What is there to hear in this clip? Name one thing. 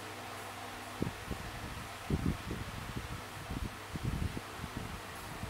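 Fingers tap and thump on a tablet's glass.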